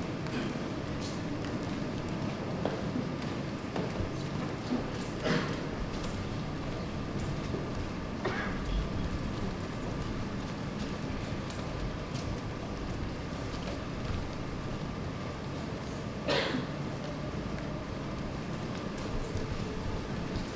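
Bare feet pad and shuffle softly across a floor.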